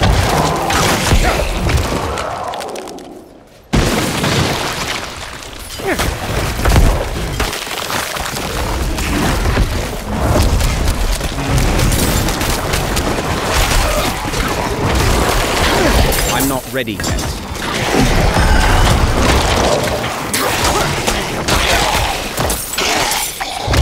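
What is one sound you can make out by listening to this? Game combat sounds of blows, slashes and spells crash and thud constantly.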